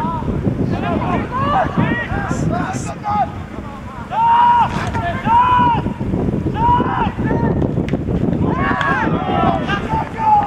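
Young men shout loudly to each other across an open outdoor field.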